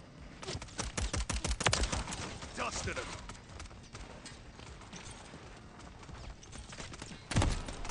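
Rapid gunfire bursts out in quick shots.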